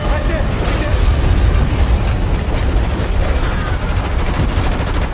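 A train rumbles past loudly, close by.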